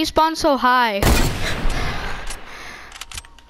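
A rifle fires a single loud shot that rings out and fades.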